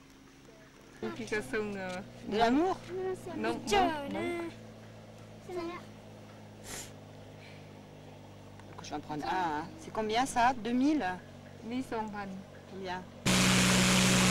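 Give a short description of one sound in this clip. Young children talk and chatter close by.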